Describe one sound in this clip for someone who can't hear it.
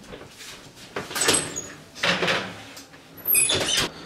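An oven door opens with a clunk.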